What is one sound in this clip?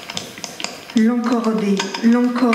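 A middle-aged woman sings close to a microphone.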